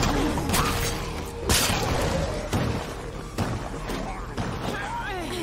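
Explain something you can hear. Heavy blows thud and crack in a fight.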